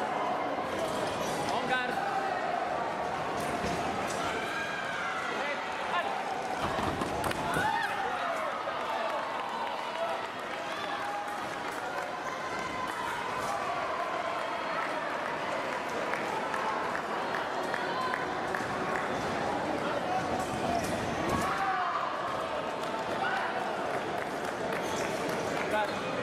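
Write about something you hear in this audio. A large crowd chatters and calls out in a big echoing hall.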